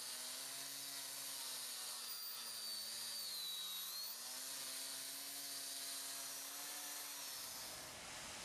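An angle grinder whines loudly as it grinds a concrete floor.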